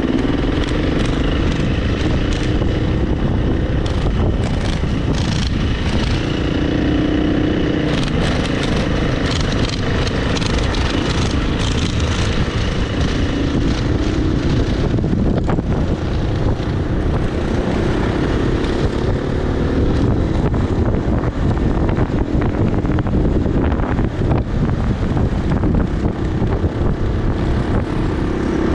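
Wind buffets loudly past the rider.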